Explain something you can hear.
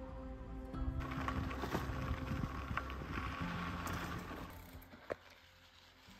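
Bicycle tyres roll and crunch over a dirt track.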